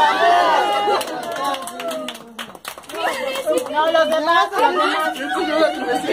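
A woman laughs excitedly close by.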